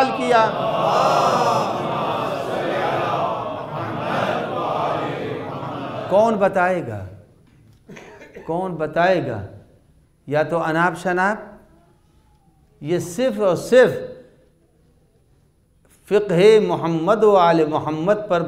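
An elderly man speaks with emphasis into a microphone, in short bursts with pauses.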